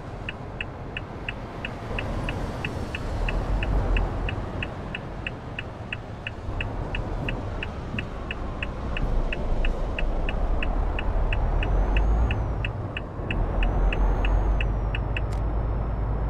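A turn signal ticks quickly and evenly.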